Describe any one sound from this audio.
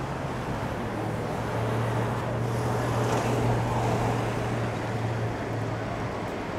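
A box truck drives past with a low engine rumble.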